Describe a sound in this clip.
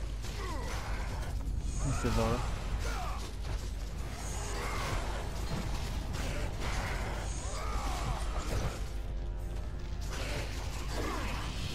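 Heavy blows strike creatures with thuds.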